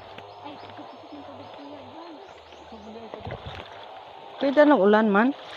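A stream trickles over rocks nearby.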